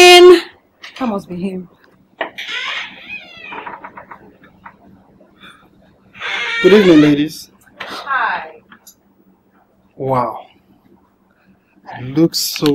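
A woman speaks calmly in reply.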